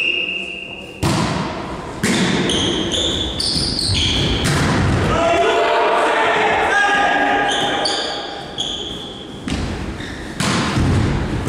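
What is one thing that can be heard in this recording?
A volleyball is struck with sharp smacks that echo around a large hall.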